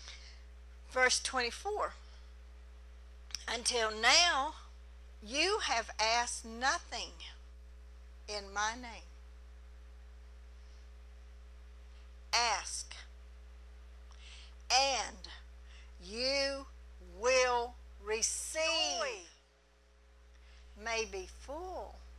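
A middle-aged woman speaks with feeling into a microphone, in bursts with pauses.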